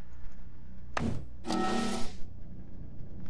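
A short electronic chime sounds as a handheld device closes.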